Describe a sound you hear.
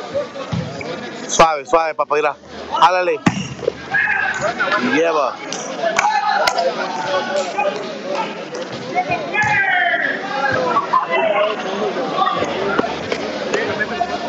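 A crowd of spectators chatters and cheers loudly in an echoing indoor hall.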